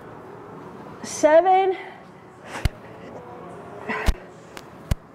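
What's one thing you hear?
A young woman breathes out hard with effort.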